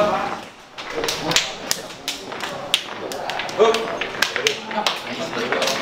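Hands slap and clap sharply, again and again.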